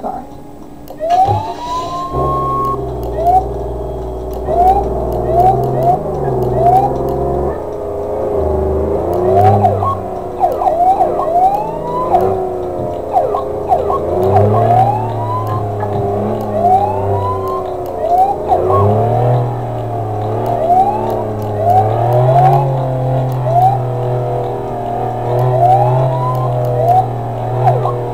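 A car engine hums and revs as it drives.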